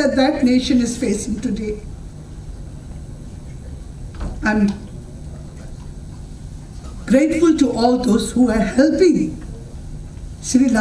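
A middle-aged woman speaks with feeling through a microphone, with pauses, in an echoing hall.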